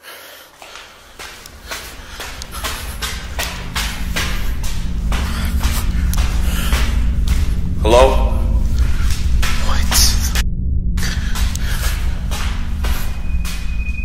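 Footsteps thud heavily on stairs.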